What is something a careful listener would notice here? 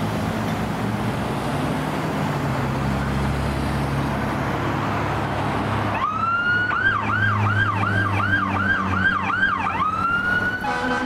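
A heavy truck engine rumbles as it approaches.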